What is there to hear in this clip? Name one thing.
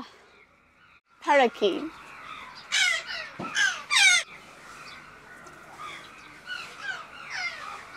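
Parrots screech loudly close by.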